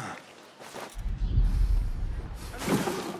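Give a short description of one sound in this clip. A heavy body lands with a dull thump.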